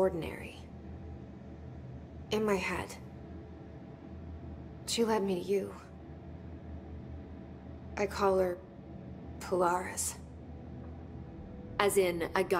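A young woman speaks quietly and calmly in short phrases.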